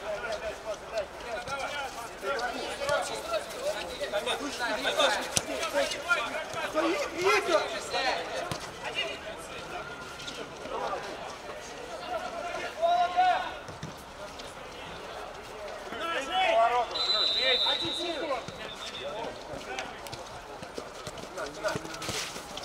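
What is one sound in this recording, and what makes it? Men shout and call out to each other across an outdoor pitch.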